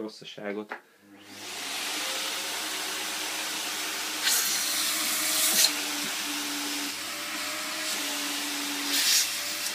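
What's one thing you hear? A vacuum cleaner hums and roars steadily.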